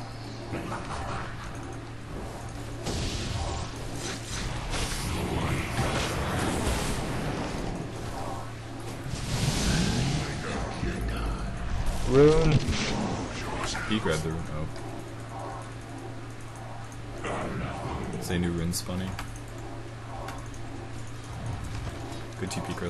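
Game fight sounds clash and crackle in quick bursts.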